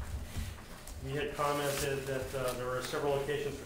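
A man reads aloud calmly through a microphone.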